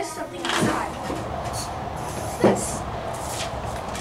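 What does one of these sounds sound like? A metal door rattles and clanks as a boy pushes it.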